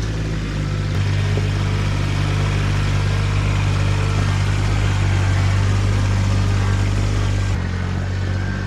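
A tractor engine grows louder as the tractor drives up close and passes.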